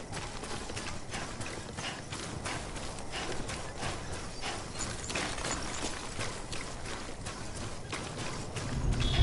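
Footsteps crunch and swish through grass at a steady walking pace.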